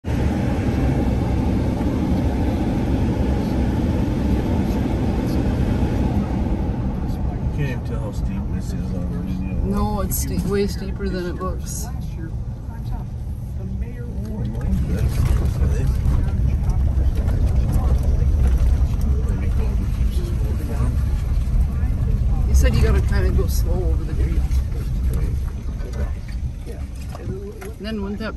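A vehicle engine rumbles low and steady while driving.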